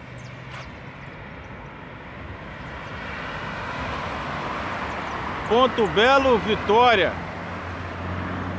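Traffic rushes past on a nearby road, growing louder.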